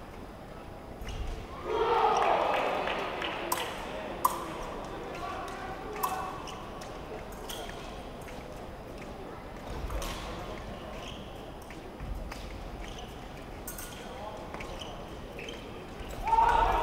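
Fencers' shoes stamp and slide on a metal piste.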